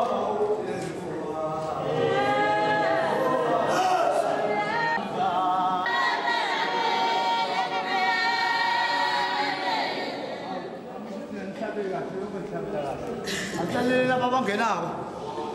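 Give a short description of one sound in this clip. A congregation sings together.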